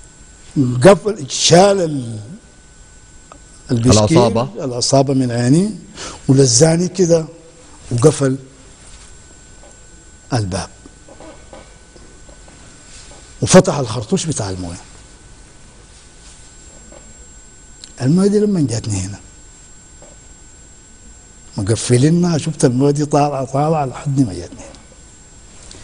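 An elderly man speaks with animation into a close microphone, in short bursts with pauses.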